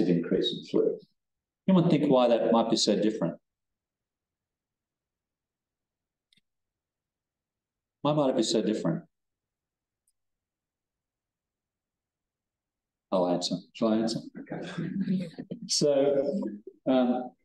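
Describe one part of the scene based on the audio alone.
A man talks calmly into a microphone, pausing between phrases.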